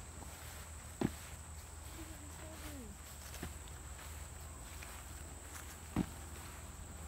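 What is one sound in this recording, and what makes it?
Feet land with thuds on wood chips outdoors.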